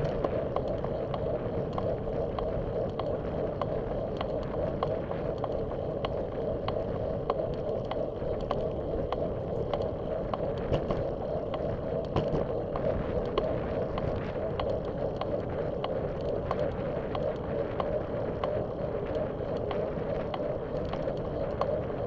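Bicycle tyres roll steadily on asphalt.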